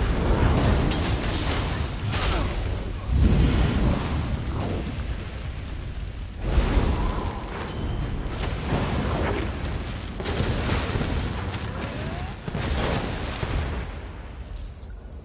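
Spell blasts and weapon hits crash loudly in a game battle.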